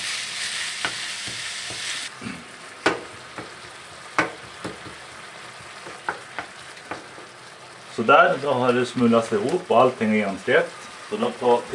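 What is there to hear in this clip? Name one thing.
A spatula scrapes and taps against a pan.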